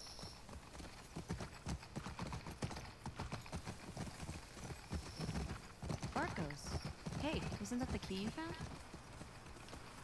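A horse's hooves thud steadily on soft ground at a trot.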